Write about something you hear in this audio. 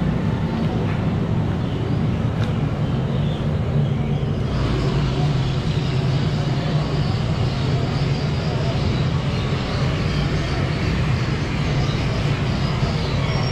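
Oil bubbles and sizzles loudly in a large pot.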